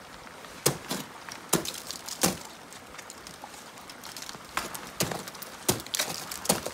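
Crampons kick and crunch into ice.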